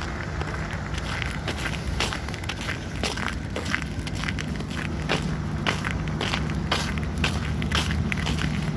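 Footsteps crunch steadily on packed snow.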